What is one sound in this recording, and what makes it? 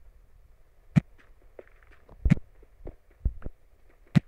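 A pickaxe knocks and cracks stone.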